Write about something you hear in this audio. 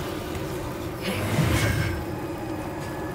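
A stone mechanism rumbles and bursts open with a blast.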